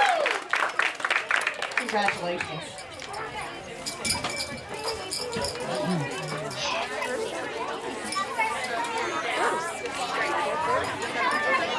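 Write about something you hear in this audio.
Children and adults chatter nearby.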